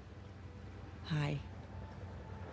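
A young woman says a cheerful greeting.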